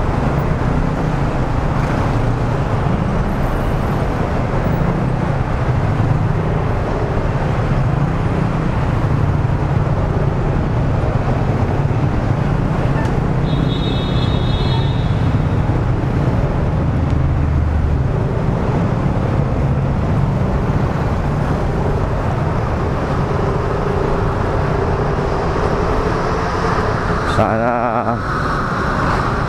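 Traffic engines hum and echo under an overpass.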